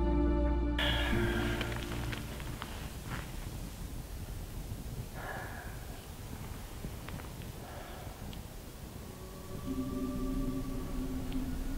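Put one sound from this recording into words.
A small fire crackles faintly in the distance.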